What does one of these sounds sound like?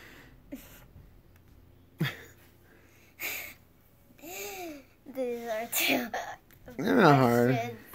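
A young girl speaks playfully and close by.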